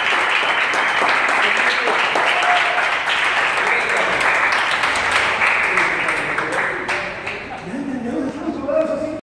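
A crowd of children and adults cheers and shouts.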